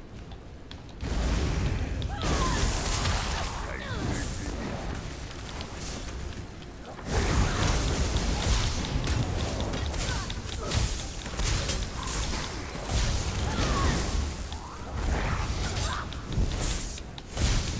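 Blows land with heavy thuds and impacts.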